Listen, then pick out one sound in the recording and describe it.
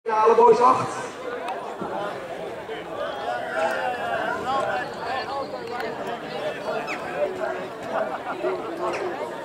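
Children chatter and call out outdoors.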